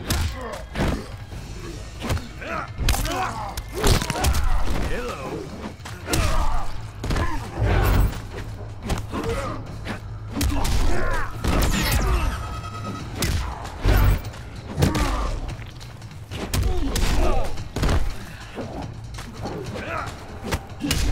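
Punches and kicks land with heavy, sharp thuds.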